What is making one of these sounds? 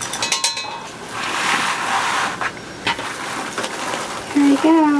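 Decorative mesh rustles as a hand adjusts it.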